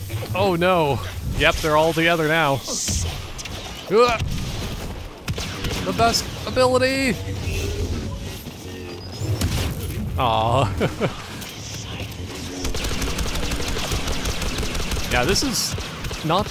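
Laser blasters fire in sharp, whining bursts.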